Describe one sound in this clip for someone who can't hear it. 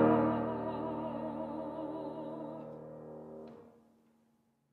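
A piano chord rings out and slowly fades.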